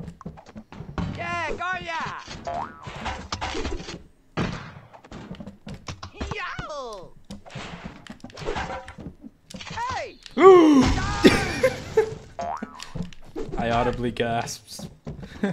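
Cartoon fighters thump and clash in quick hits.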